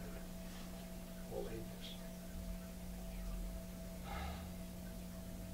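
An elderly man speaks calmly, with pauses, heard from a short distance.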